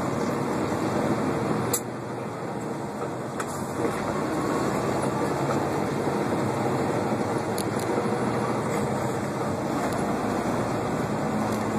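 Tyres rumble on asphalt.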